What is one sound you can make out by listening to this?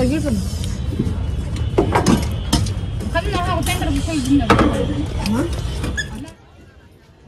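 A young woman talks cheerfully close by.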